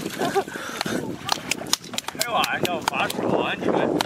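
A paddle splashes in the water.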